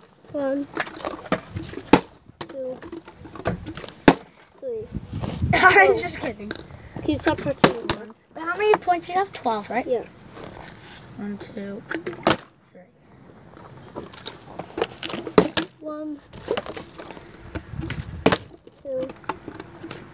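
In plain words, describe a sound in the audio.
A plastic bottle crinkles and thumps.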